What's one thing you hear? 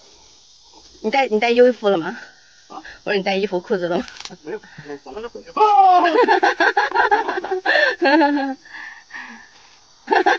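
A man talks with animation close by outdoors.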